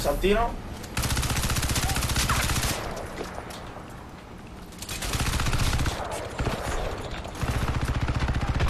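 Rapid gunfire bursts in quick rattling volleys.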